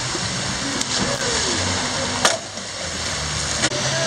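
A child splashes into a pool of water.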